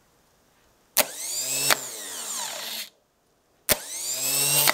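A starter motor's gear engages with a sharp clack.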